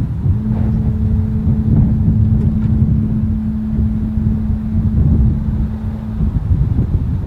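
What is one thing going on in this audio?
An electric motor hums steadily as a car roof lifts open.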